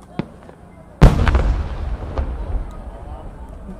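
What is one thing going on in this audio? A firework bursts far off with a deep boom that rumbles away.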